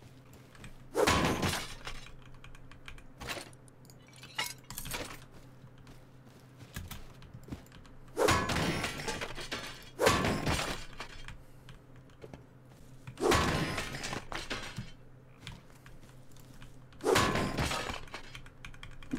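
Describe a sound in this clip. Metal clangs loudly as scrap metal is struck.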